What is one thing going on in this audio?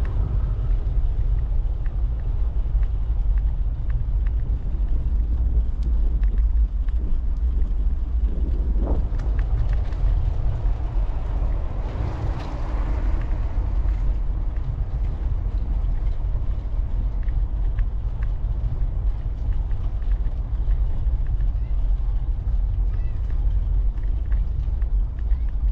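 Bicycle tyres rumble and rattle over brick paving.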